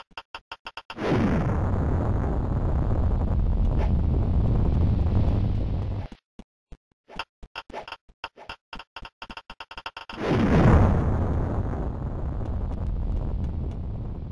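A bomb explodes with a loud, rumbling blast.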